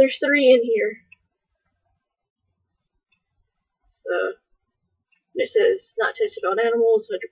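A young woman speaks calmly and close by, reading out.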